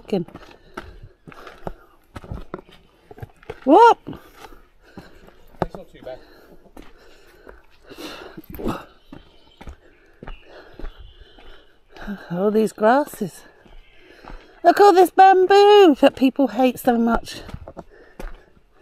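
Footsteps crunch on dry dirt and stones.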